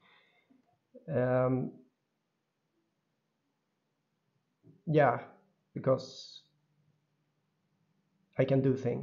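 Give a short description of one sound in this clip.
A man speaks calmly in short phrases, close to a microphone, with pauses between them.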